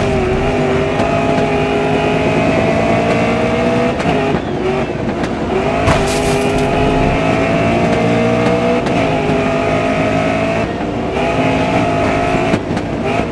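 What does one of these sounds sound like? A racing car engine roars loudly, rising in pitch and dropping at each gear change.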